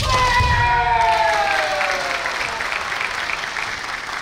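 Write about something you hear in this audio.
A crowd of spectators applauds in a large echoing hall.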